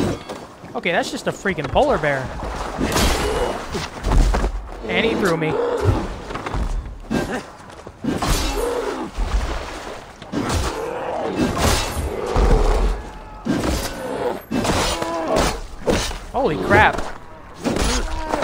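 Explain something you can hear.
A bear growls and roars.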